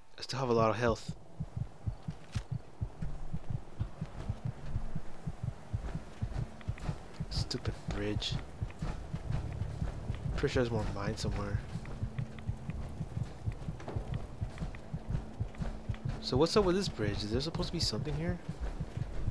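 Heavy metal footsteps thud steadily.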